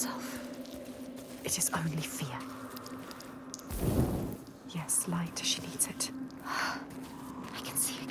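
A torch flame crackles and flickers close by.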